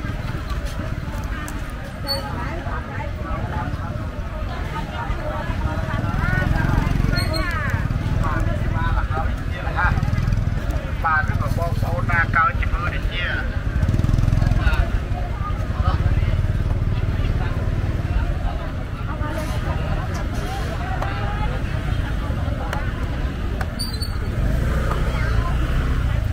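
A busy outdoor crowd chatters all around.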